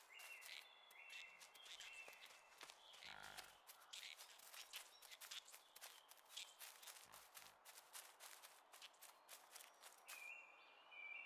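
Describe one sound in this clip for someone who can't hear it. Small footsteps patter quickly on the ground.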